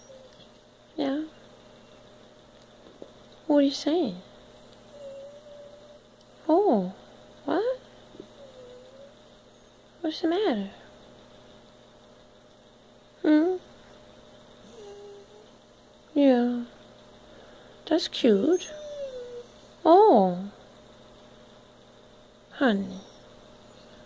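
A dog howls and whines in short bursts close by.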